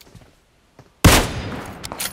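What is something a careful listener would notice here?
A rifle shot cracks loudly.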